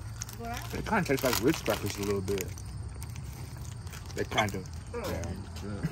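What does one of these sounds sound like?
A foil snack wrapper crinkles in hands.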